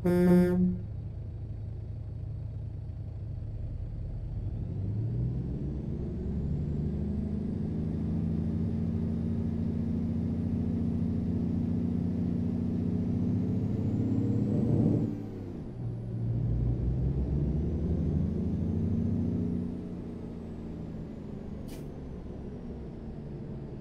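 A truck engine rumbles and revs up as it accelerates, then drops and revs again after a gear change.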